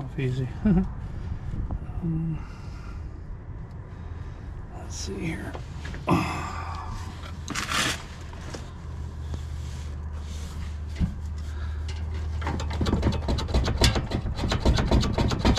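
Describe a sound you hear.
A metal clamp clinks and scrapes on an exhaust pipe.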